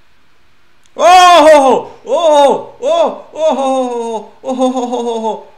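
A young man shouts loudly with alarm into a close microphone.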